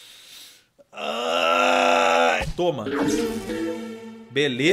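A young man laughs loudly and shouts into a close microphone.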